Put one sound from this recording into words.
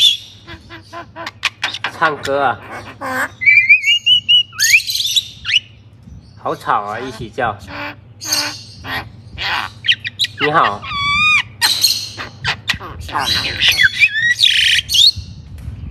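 Two mynah birds chatter and squawk loudly, close by.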